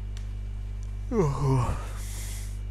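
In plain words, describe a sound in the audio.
A young man yawns loudly and groans close to a microphone.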